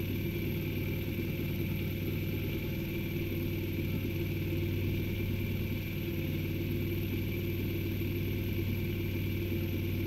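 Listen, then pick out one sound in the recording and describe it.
A small motorcycle engine idles steadily close by.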